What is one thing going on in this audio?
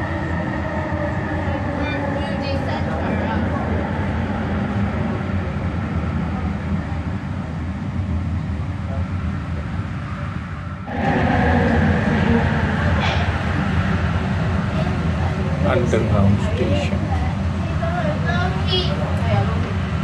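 A train rumbles steadily along its rails.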